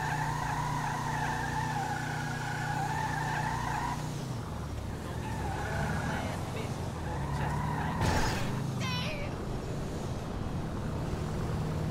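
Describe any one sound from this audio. A car engine hums steadily as the car drives slowly.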